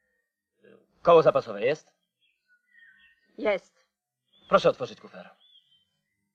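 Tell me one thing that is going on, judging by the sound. A man speaks up close, calmly and questioning.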